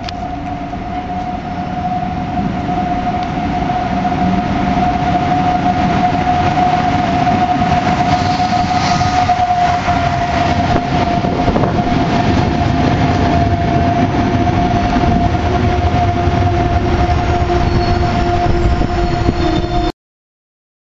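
An electric locomotive whines with a steady high hum.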